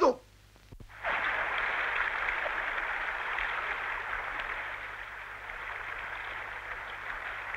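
Water rushes loudly and steadily.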